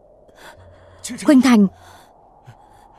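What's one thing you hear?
An elderly man cries out in pain.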